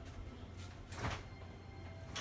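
A cabinet door knocks shut.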